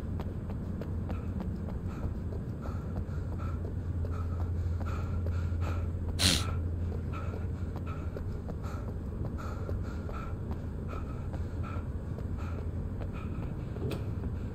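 Footsteps run quickly and steadily on pavement.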